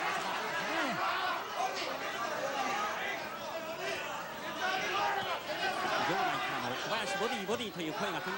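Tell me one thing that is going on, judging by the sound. A large crowd shouts and cheers in a big echoing hall.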